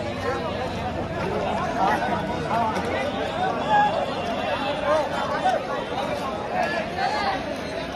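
A large crowd chatters and shouts outdoors.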